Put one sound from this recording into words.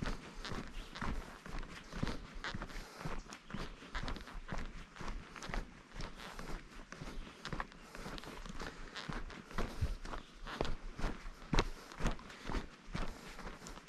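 Footsteps crunch steadily on a dirt trail.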